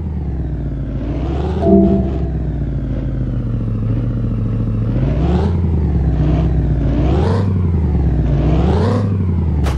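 A truck engine hums and revs up and down repeatedly.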